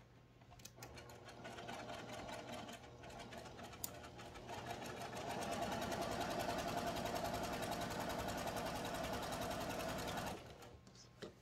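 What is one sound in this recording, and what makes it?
A sewing machine hums and whirs steadily as it stitches.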